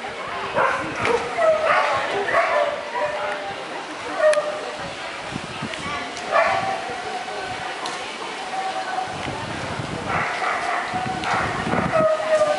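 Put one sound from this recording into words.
A woman calls out commands to a dog with animation.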